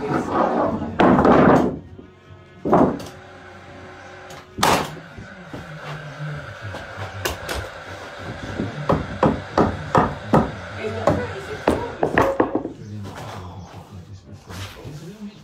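A nail gun fires nails into wood with sharp bangs.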